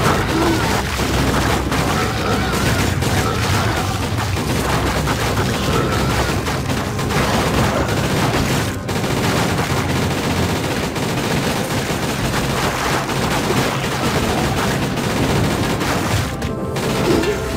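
Rapid gunfire rattles from a video game.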